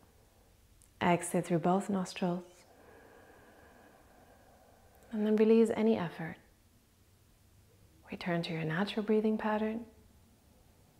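A young woman speaks softly and calmly, close to a microphone, with long pauses.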